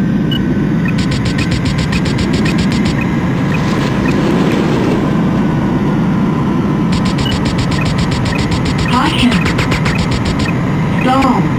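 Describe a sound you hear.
A warning alarm beeps rapidly.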